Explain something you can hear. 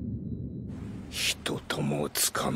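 An elderly man speaks gruffly into a telephone, heard close.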